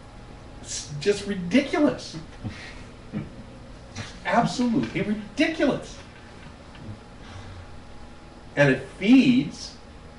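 An older man talks with animation, close by.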